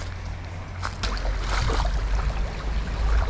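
A shallow river trickles over stones.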